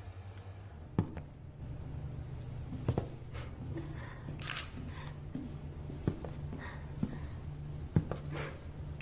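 Slow footsteps fall on a hard floor.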